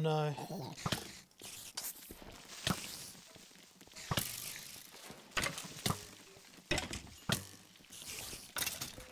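A sword strikes in a series of sharp, quick hits.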